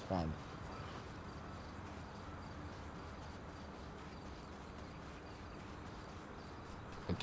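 Footsteps run quickly on a dirt path.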